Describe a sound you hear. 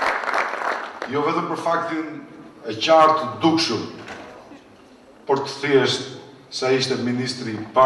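A man speaks into a microphone over a loudspeaker, in a formal, measured tone.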